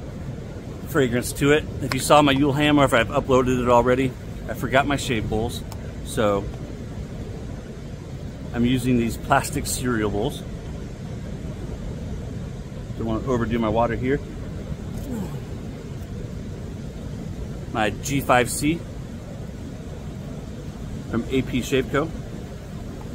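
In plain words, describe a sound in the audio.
A middle-aged man talks calmly close to a microphone, outdoors.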